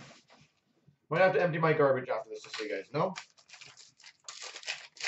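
Plastic packaging rustles and crinkles as hands handle it.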